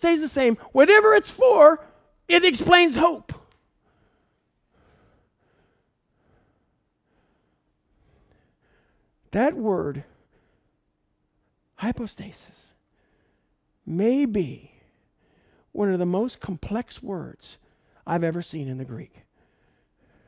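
A man lectures calmly into a microphone, pausing between phrases.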